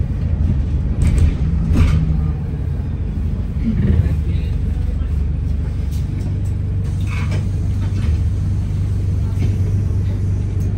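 A bus interior rattles and clatters over bumps.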